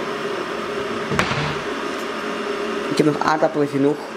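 A cupboard door bangs open.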